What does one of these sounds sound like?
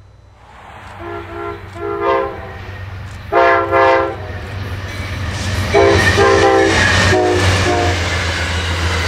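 A train horn blows loud, repeated blasts.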